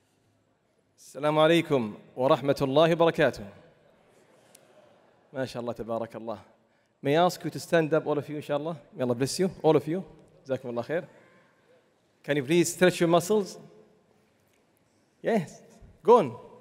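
A man chants in a slow, melodic voice through a microphone, in pauses between phrases.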